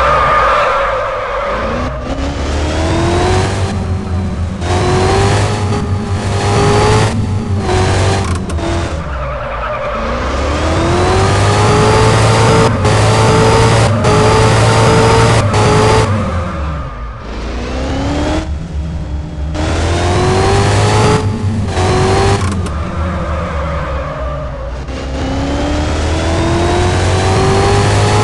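A car engine revs up repeatedly, its pitch climbing and dropping with each gear change.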